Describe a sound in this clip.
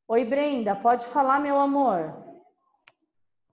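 A child speaks clearly over an online call.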